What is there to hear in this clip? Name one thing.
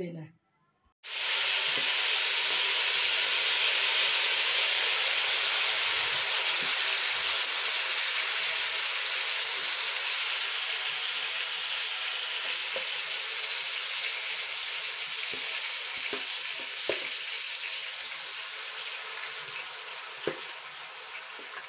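Food sizzles loudly in hot oil and slowly quietens.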